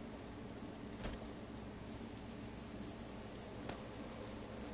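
A soft click sounds as an item is moved in a game menu.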